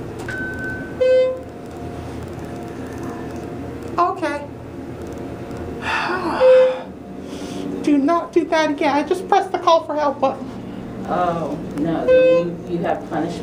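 An elevator chime dings a few times.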